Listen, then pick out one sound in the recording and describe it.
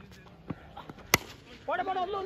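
A bat strikes a cricket ball with a sharp crack.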